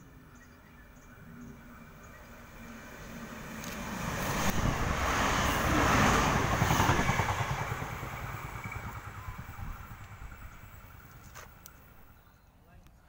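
A passenger train roars past at speed, loud and close, then fades away.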